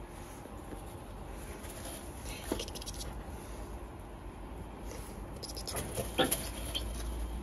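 A hand brushes against a wire cage.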